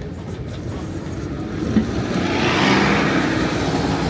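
A bus passes close by with a loud engine.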